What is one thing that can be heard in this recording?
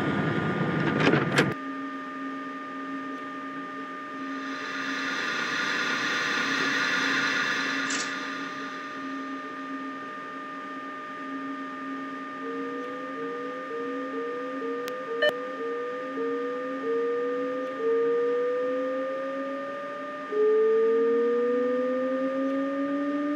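An electric train motor hums steadily.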